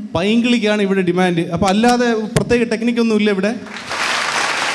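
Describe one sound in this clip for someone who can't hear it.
A man sings loudly.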